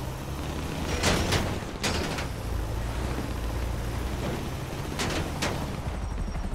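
A van body thumps and bangs as it bounces down a slope.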